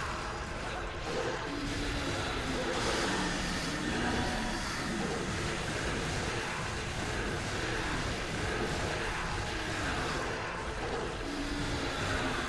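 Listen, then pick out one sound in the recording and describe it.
A large monster growls and roars.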